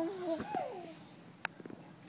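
A baby babbles and squeals up close.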